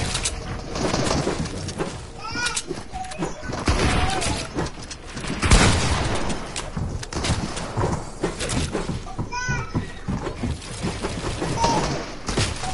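Wooden building pieces clatter into place in quick bursts.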